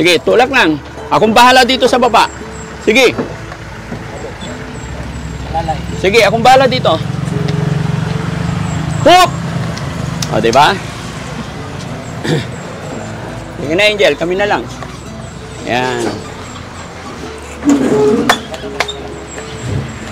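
Several men talk with one another outdoors.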